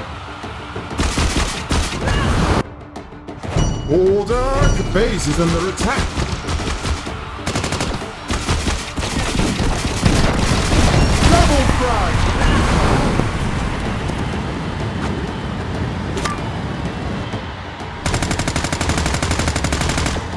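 Gunfire from a game rattles rapidly.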